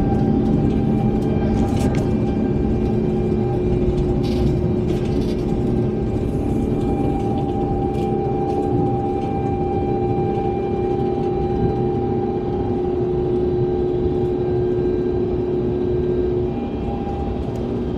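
Aircraft wheels rumble over the runway.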